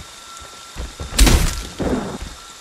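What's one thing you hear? A wooden door is smashed with a loud crash.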